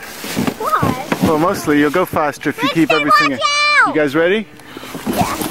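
Young girls squeal and shout excitedly close by.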